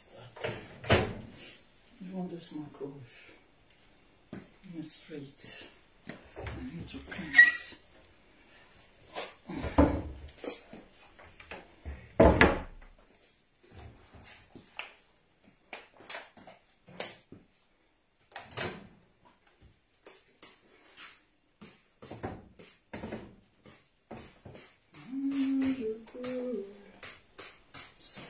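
Items clatter and knock as they are handled.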